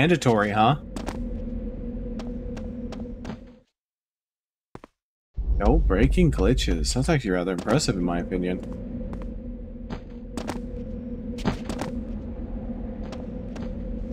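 Footsteps patter on a stone floor.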